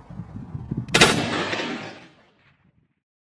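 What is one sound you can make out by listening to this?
A rifle fires a single loud shot that echoes and fades.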